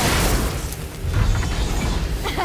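Flames crackle and whoosh.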